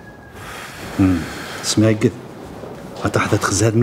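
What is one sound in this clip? A middle-aged man answers in a calm, low voice.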